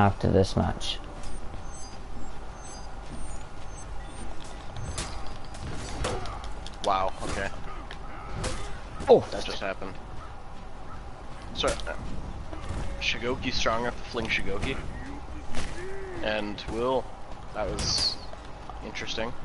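Metal weapons clash and strike in a sword fight.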